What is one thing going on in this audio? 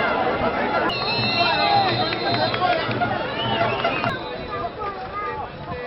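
A crowd murmurs and shouts in the stands.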